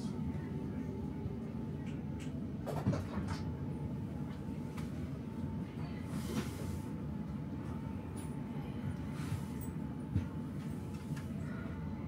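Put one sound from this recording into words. A train's interior hums with a low, steady rumble.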